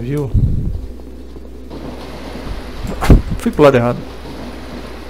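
A man speaks briefly and close into a headset microphone.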